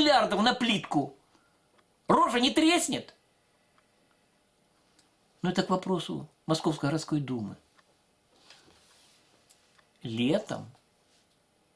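An elderly man speaks close by in short bursts with pauses.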